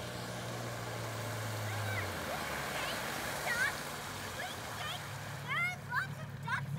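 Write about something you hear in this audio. An outboard motor hums steadily as a small boat approaches across the water.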